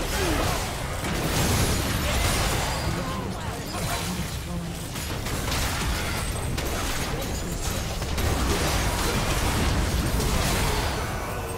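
Game weapons and attacks strike and crash repeatedly.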